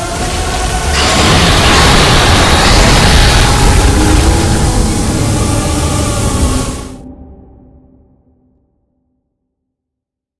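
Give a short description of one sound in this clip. A deep rumbling chord swells and then fades into silence.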